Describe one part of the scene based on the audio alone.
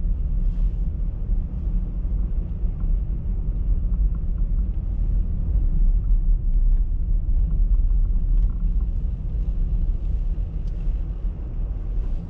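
Tyres rumble on a snowy road.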